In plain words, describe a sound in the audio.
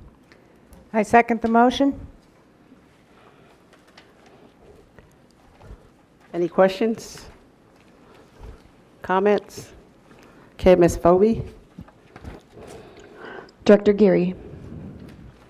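A woman speaks briefly into a microphone in short, calm phrases, with pauses between them.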